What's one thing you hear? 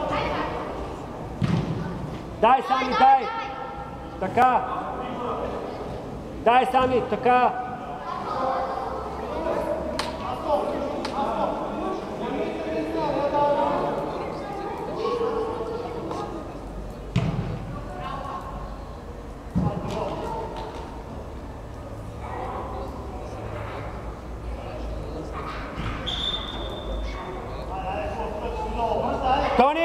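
Spectators chatter and call out nearby.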